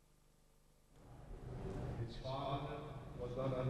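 A man speaks through a loudspeaker in a large echoing hall.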